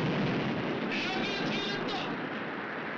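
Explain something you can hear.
A man speaks urgently into a microphone.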